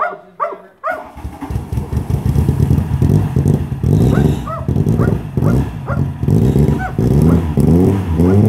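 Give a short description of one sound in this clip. A car engine starts and runs loudly with a rough idle.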